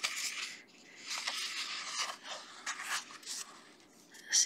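A paper page is turned with a soft rustle.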